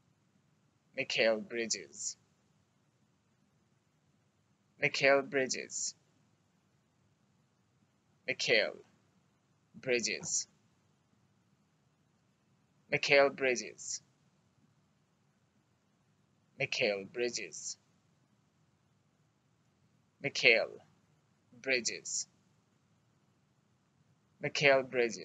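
A young man speaks calmly and slowly into a close microphone, in short phrases with pauses.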